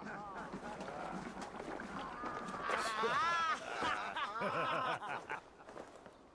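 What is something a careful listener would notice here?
Men talk and laugh together nearby.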